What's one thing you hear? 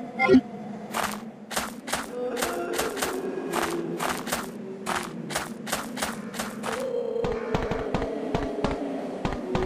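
Footsteps clatter quickly on metal.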